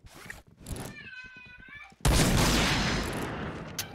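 A sniper rifle fires a single loud, sharp shot.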